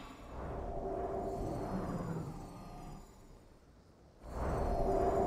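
Game spells whoosh and hum.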